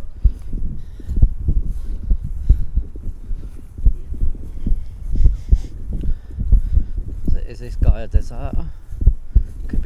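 Footsteps thud on grass close by.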